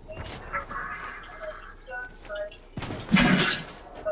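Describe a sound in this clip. Footsteps patter on grass in a game.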